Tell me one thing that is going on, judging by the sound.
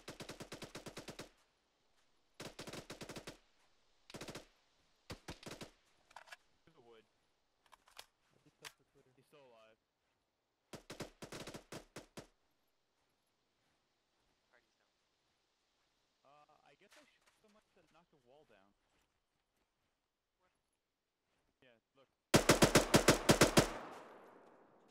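Automatic rifle fire rattles in short, loud bursts.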